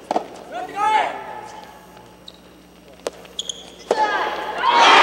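A tennis ball is struck sharply by rackets in a large echoing hall.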